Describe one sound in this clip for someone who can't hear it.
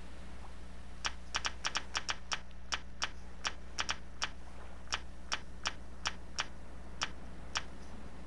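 A game menu ticks with short, quick clicks as the selection moves.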